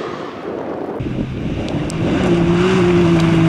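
An off-road buggy engine roars louder as it approaches.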